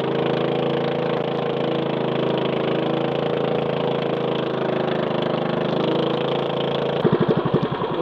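A boat engine hums steadily, then cuts out.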